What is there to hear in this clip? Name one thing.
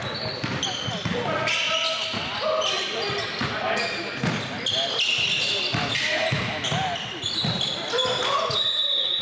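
Young men shout and call out to each other on the court.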